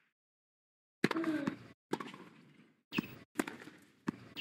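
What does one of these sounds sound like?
A tennis ball is struck hard with a racket, back and forth.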